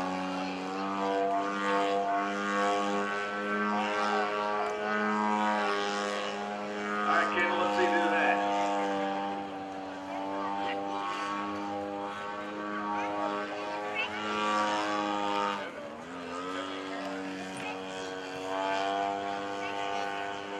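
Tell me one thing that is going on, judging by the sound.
A small propeller plane's engine drones steadily overhead, rising and falling in pitch as it loops and rolls.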